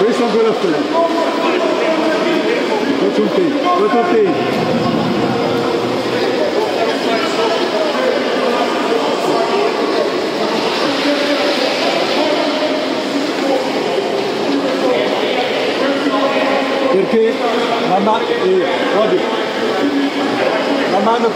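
Swimmers splash and churn through water in a large echoing hall.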